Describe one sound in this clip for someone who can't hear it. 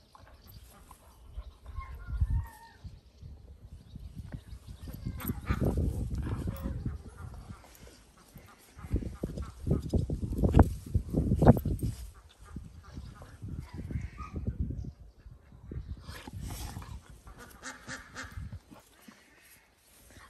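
Two dogs tussle and roll in the grass.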